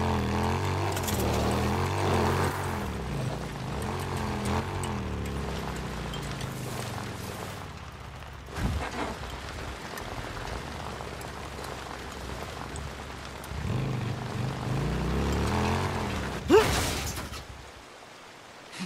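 A motorcycle engine revs and rumbles as it rides.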